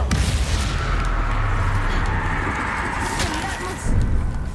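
A magic spell crackles and zaps.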